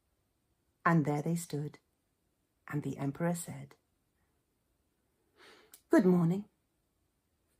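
A woman speaks with animation into a close microphone, in short bursts with pauses.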